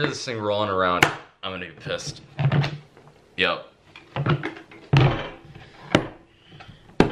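A hard plastic case thuds and rattles as it is handled.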